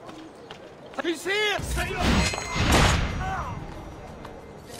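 A loud, heavy struggle ends with a sharp blade strike.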